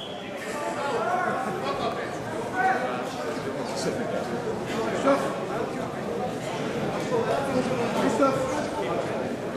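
A large crowd chatters and calls out in a big echoing hall.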